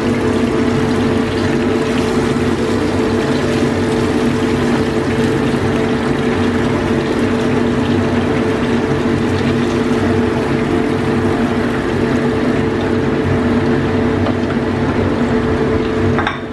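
Hot oil sizzles and crackles steadily in a frying pan.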